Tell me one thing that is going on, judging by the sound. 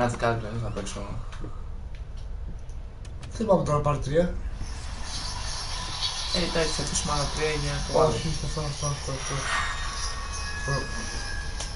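A young man talks excitedly into a nearby microphone.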